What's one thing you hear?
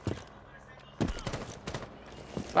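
A gun fires a burst of shots up close.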